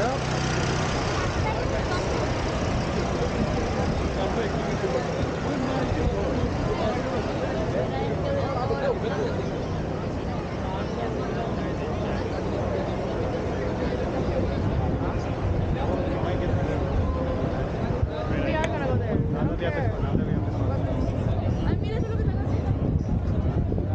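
A large outdoor crowd chatters all around.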